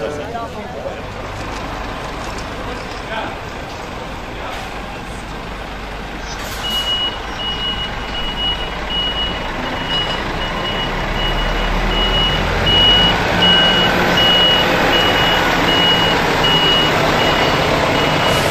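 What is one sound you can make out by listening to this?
A truck engine rumbles low as the truck moves slowly along the street.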